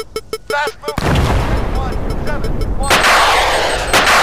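An explosion booms loudly nearby.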